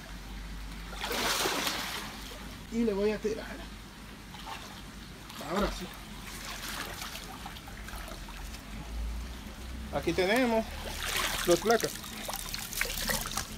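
Water splashes as a net is pulled through it.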